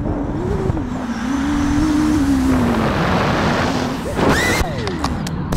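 A drone's motors whine loudly as it flies.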